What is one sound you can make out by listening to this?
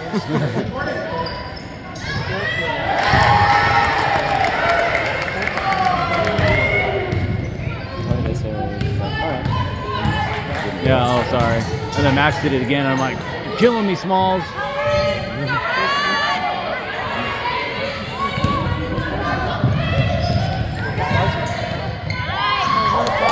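A crowd of spectators shouts and cheers, echoing in a large hall.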